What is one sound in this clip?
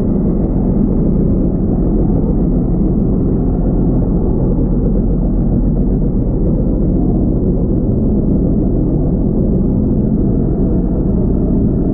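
Water rumbles and swirls, heard muffled from underwater.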